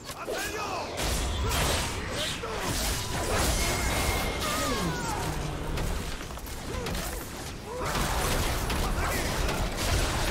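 Magic blasts whoosh and crash in a busy fight.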